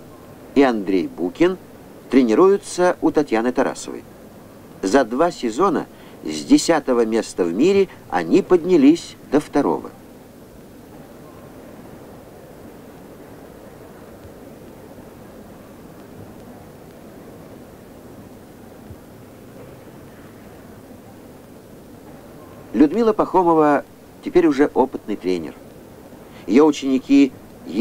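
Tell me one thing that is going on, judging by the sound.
A woman talks warmly and cheerfully nearby.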